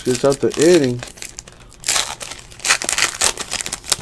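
A foil card pack tears open.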